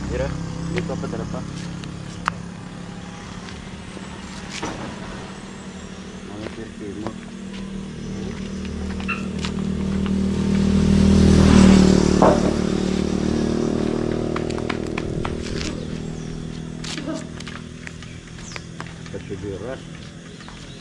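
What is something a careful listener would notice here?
Flip-flops slap on the ground as a man walks.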